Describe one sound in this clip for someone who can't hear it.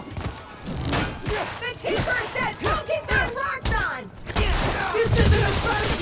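Blows and punches thud in a fight.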